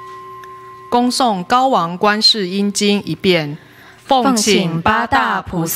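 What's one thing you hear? An elderly man chants in a deep, steady voice through a microphone.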